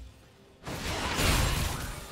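Magical spell effects burst and crackle loudly.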